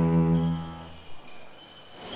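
A cello holds a low, deep final note that fades away.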